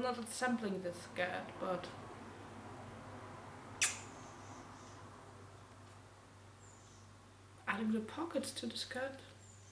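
A young woman talks calmly and close by, with a pause in between.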